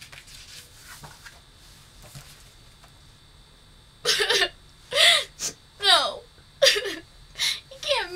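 Paper rustles in a young woman's hands.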